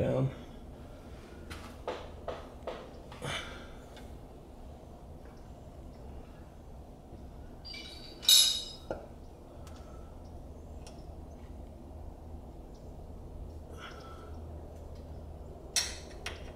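Metal tools clink and tap against car parts.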